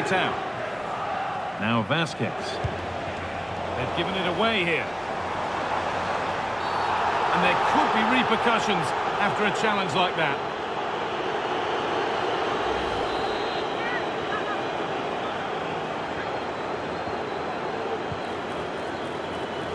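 A large stadium crowd roars steadily, swelling for a few seconds.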